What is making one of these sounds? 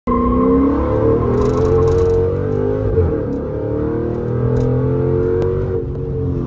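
A car engine roars loudly from inside the cabin, its pitch rising and falling as the car accelerates and changes gear.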